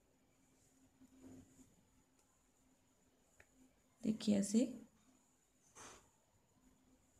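Hands rub and handle knitted wool with a soft rustle.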